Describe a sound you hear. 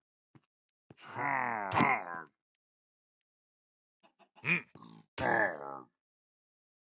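A creature grunts with a low, nasal mutter.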